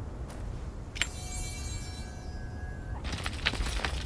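A bright magical chime rings and shimmers.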